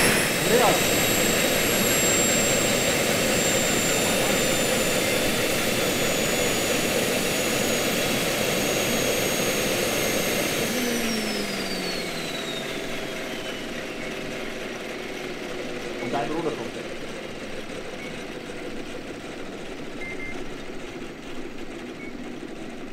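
A model turbine helicopter's engine whines and then winds down, its pitch falling.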